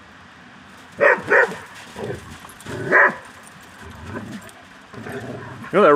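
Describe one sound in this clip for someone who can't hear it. Two dogs bark and growl playfully nearby.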